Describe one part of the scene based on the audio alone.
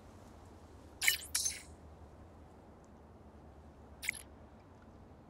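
A short electronic message chime sounds.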